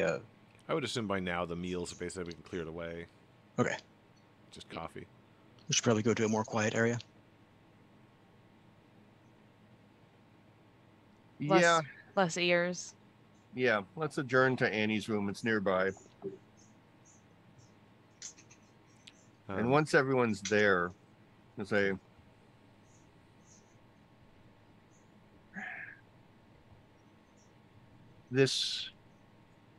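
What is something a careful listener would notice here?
A man speaks calmly into a microphone over an online call, with pauses.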